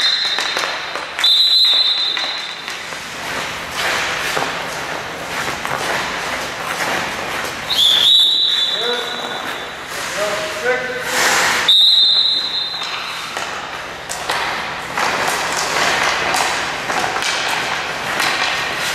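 A hockey stick taps and clacks on a puck.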